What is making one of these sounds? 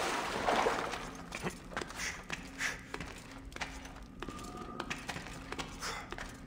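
Hands scrape and grip on rock while climbing.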